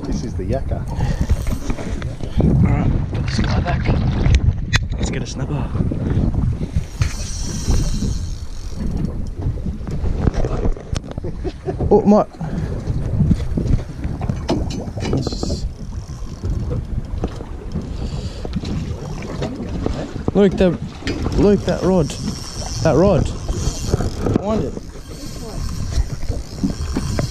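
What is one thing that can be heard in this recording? Wind buffets the microphone on open water.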